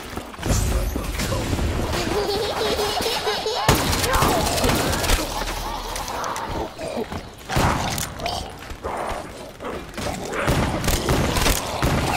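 Zombies groan and snarl.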